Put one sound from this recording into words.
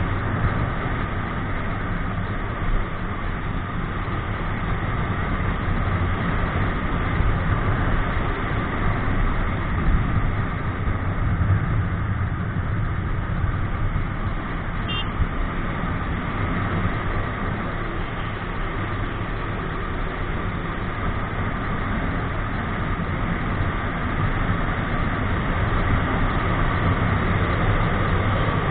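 A motorcycle engine hums steadily as it rides along.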